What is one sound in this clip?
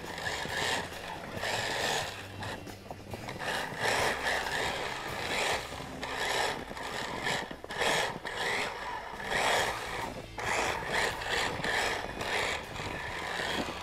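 A sled hisses and scrapes over snow.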